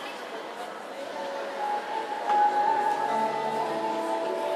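Music plays through a loudspeaker in a large echoing hall.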